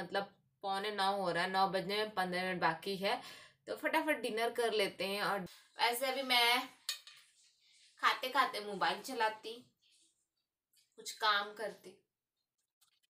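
A young woman speaks calmly and clearly close to the microphone.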